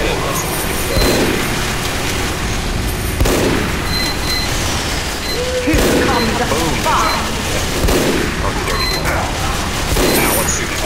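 A rifle fires loud single shots every couple of seconds.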